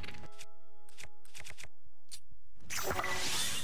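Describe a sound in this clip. Game menu clicks tick quickly.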